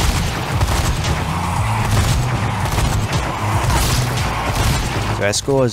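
A heavy machine gun fires in a rapid, steady stream.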